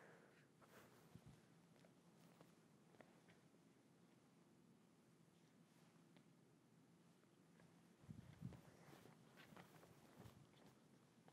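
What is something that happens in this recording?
Footsteps tap on a wooden stage floor.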